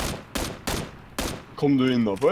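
Gunshots crack sharply in quick succession.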